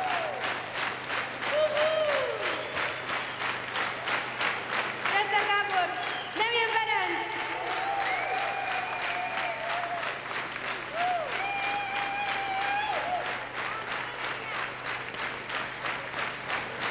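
A crowd cheers and whistles loudly in a large echoing hall.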